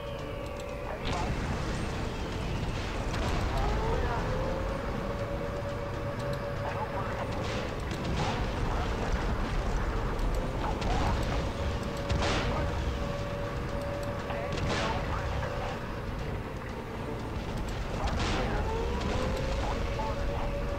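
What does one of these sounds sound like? Shells explode with heavy blasts.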